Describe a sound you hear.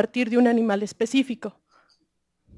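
A young woman speaks briefly into a microphone.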